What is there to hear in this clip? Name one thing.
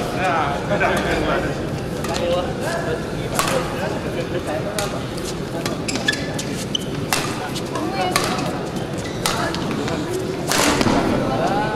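A racket smacks a shuttlecock back and forth.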